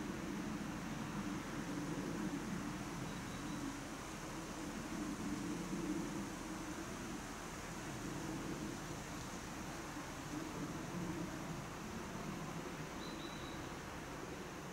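Wind rustles through the leaves of trees outdoors.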